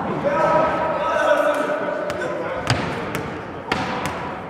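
A volleyball thuds as it bounces and is hit in a large echoing hall.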